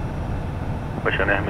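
A man speaks briefly through a headset microphone.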